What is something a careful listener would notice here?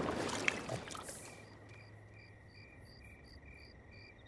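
Water bubbles and churns in a hot tub.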